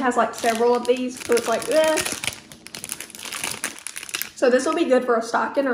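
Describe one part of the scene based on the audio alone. A plastic wrapper crinkles in a hand.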